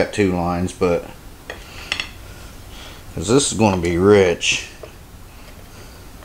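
A knife taps against a plate while cutting through soft cake.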